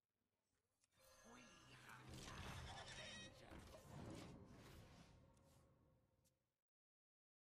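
A video game plays a loud burst of magical whooshes and chimes.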